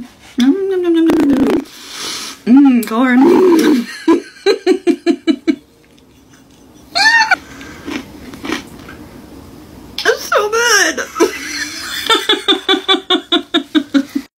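A woman speaks and laughs expressively close up.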